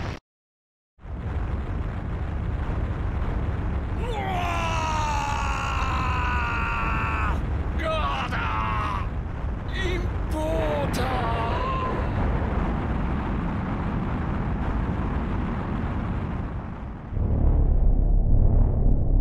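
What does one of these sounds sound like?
A deep roar rumbles throughout.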